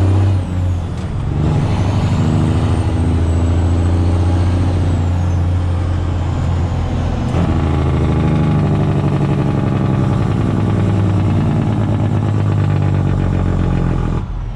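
Tyres hum on the road.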